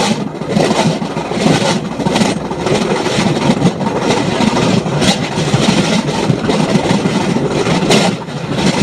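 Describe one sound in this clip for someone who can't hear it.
A small rail vehicle rumbles and rattles along a track at speed.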